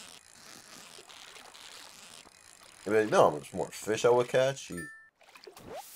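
A fishing reel whirs as a line is wound in.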